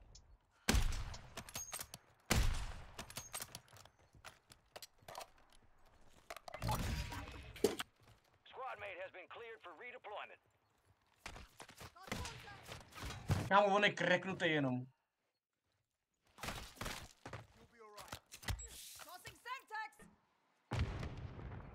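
Rifle shots boom loudly.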